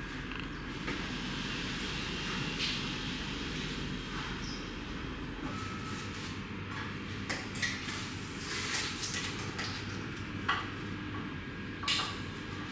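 Hands rub and scrub wet hair.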